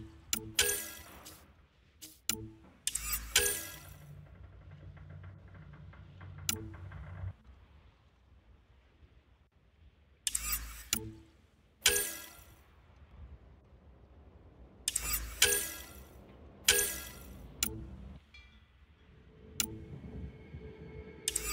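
Soft electronic whooshes and chimes sound as menu pages change.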